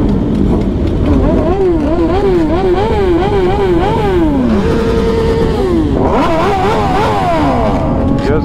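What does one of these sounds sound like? A motorcycle engine revs up and down repeatedly.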